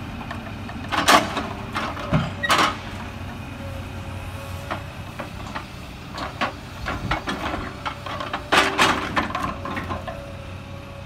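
Heavy logs knock and thud as a loader's grapple handles them.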